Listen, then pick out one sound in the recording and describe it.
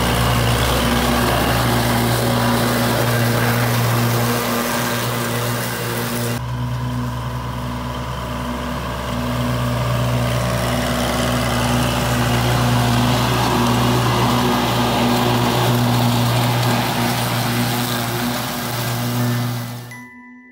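A tractor engine idles with a steady, low hum.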